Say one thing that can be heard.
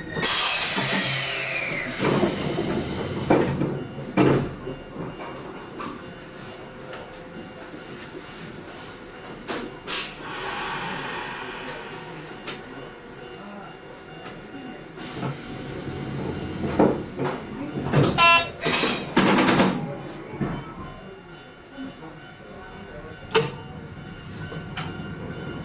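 A train rumbles and clatters along the rails.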